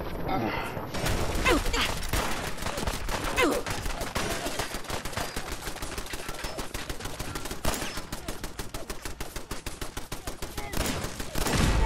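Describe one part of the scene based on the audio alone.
Rapid gunfire rattles in fast bursts.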